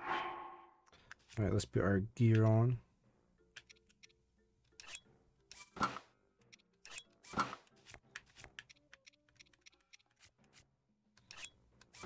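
Menu clicks and chimes sound in quick succession.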